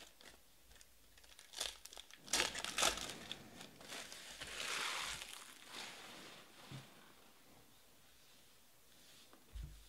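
Trading cards click and shuffle as they are handled.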